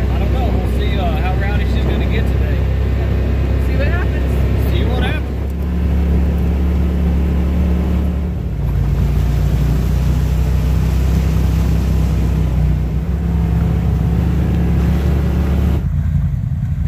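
An off-road vehicle's engine rumbles steadily.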